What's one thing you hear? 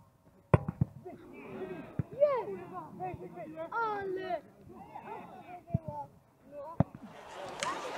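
Male players shout and call to each other across an open football pitch.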